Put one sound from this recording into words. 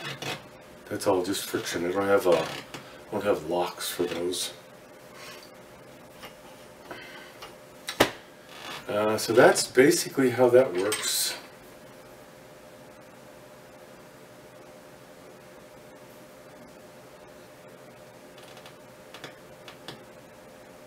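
Metal parts click as a man handles a mechanism.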